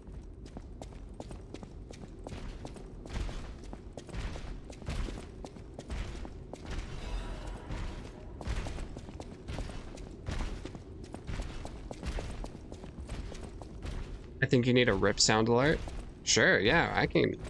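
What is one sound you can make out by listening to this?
Footsteps tap quickly across a hard floor.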